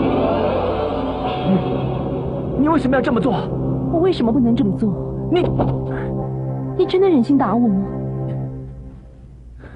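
A young man speaks forcefully, close by.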